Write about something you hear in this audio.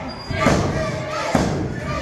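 A referee slaps the mat with his hand.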